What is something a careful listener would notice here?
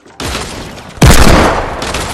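A pistol fires a sharp shot in a video game.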